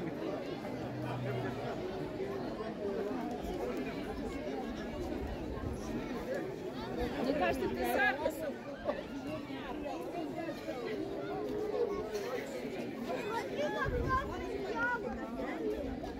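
A crowd of men and women chat all around outdoors.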